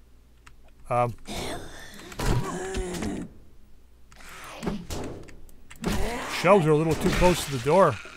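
A monster snarls and growls close by.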